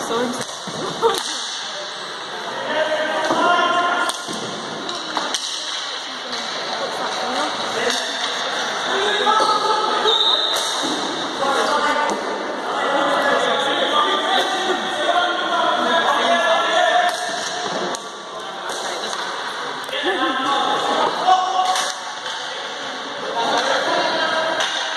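Players shout and call out to each other across an echoing hall.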